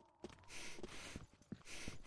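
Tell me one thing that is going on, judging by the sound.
A knife slashes through the air.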